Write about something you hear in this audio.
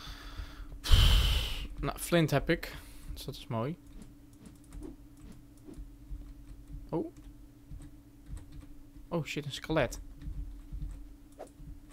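Footsteps clatter on a wooden ladder.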